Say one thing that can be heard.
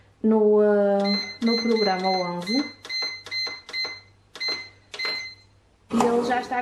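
A bread machine beeps sharply as its buttons are pressed.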